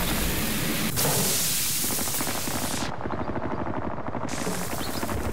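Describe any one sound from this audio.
A blowtorch hisses.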